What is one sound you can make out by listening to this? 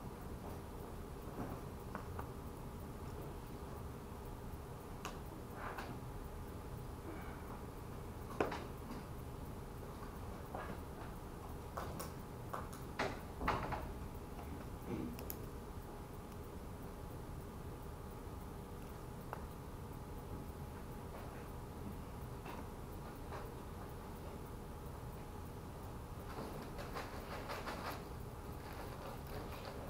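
A man speaks faintly from across a room.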